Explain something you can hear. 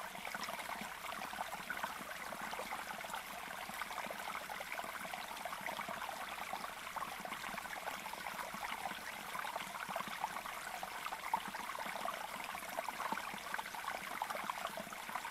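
A caged bird chirps rapidly and constantly.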